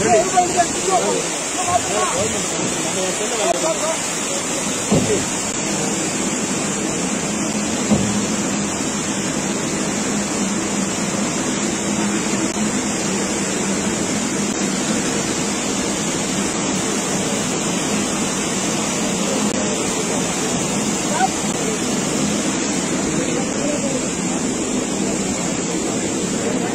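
Floodwater rushes and roars steadily over rocks.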